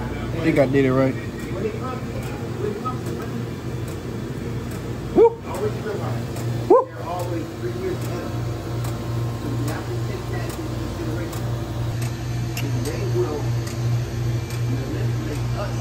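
A frozen drink machine hums steadily.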